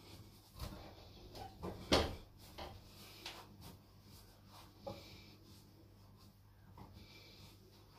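A towel rubs against skin.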